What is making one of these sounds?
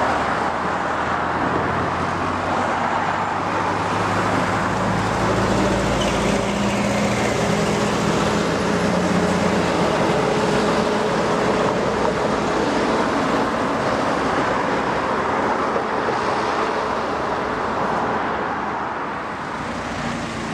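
An old bus engine drones loudly as the bus drives past close by.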